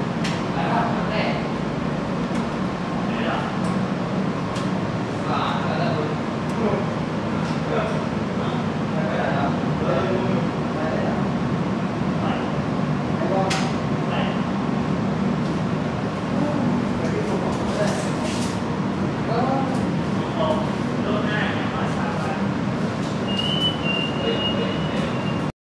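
An electric fan whirs steadily nearby.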